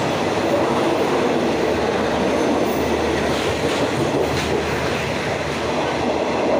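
A passenger train rushes past at speed under a station roof.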